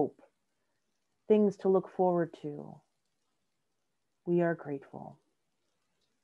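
A woman speaks calmly and slowly in short phrases, heard through an online call.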